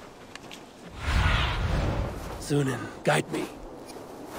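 A large bird's wings flap loudly in a rush of wind.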